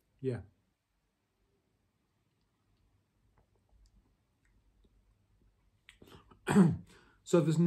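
A man gulps a drink.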